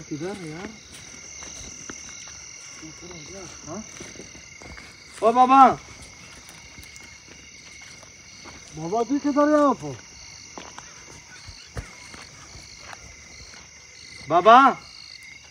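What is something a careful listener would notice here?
A man calls out loudly outdoors, several times.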